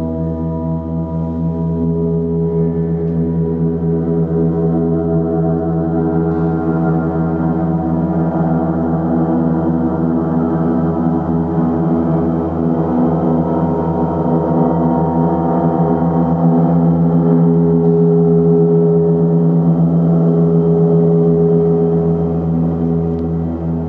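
A large gong hums and swells with a deep, steady, shimmering drone in an echoing room.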